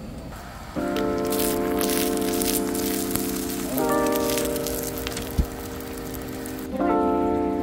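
Eggs sizzle on a hot griddle.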